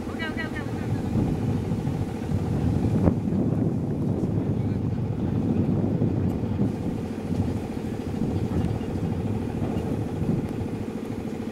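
Men talk to one another at a distance outdoors.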